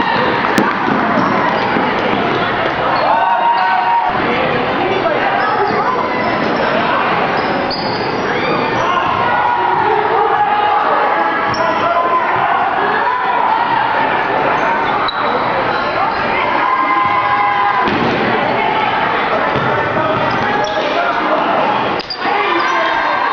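A crowd chatters and cheers loudly in a large echoing gym.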